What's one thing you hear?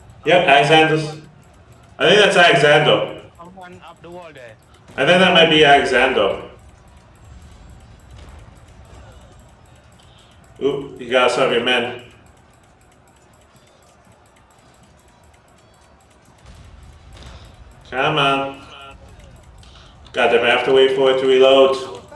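A young man talks into a close microphone with animation, in short bursts.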